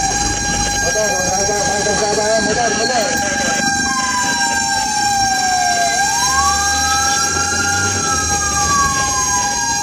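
Motorbikes buzz past nearby.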